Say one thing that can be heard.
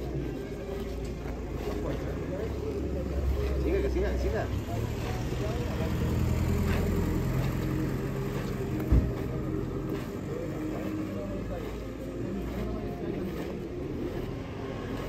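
Footsteps shuffle slowly on a paved street.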